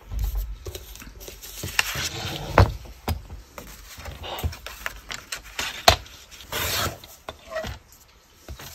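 Paper rustles and slides as hands move it.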